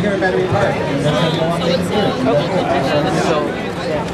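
A woman talks cheerfully up close.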